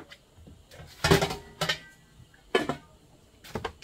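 A metal lid clatters onto a pot.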